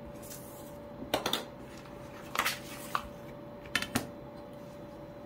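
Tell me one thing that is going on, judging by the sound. Paper sheets rustle and flap as they are handled.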